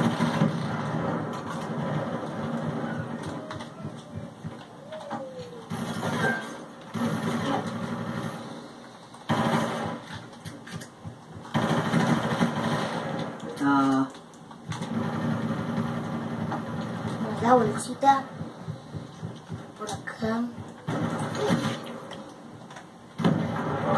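Video game gunfire and explosions play through a television speaker.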